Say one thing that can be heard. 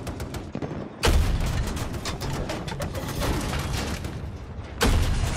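A tank cannon fires with a heavy boom.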